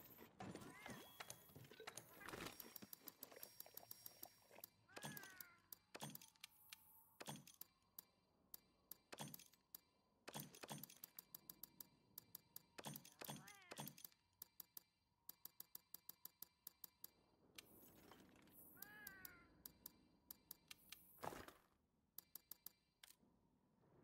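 Game menu sounds click and chime as items are chosen.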